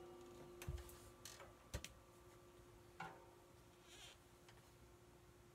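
Drumsticks strike drums and cymbals in a few scattered hits.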